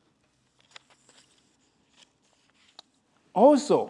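Paper rustles in a man's hands.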